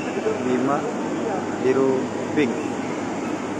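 A man calls out nearby.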